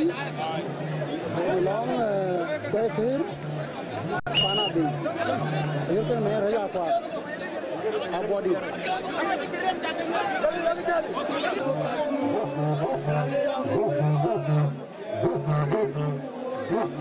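A crowd of men and women chatters and calls out all around, outdoors.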